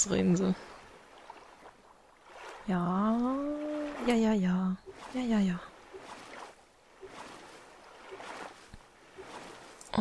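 Gentle waves lap against a small inflatable raft.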